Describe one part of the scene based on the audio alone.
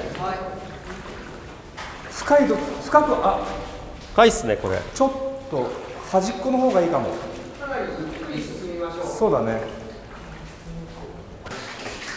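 Boots splash through shallow water.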